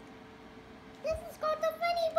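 A young girl speaks in a high voice.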